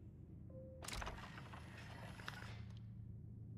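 A heavy globe rumbles as it turns.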